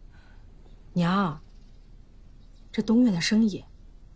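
A young woman speaks with feeling.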